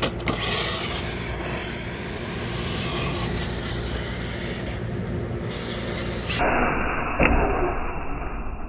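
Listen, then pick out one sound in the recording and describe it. Outdoors, wind buffets the microphone.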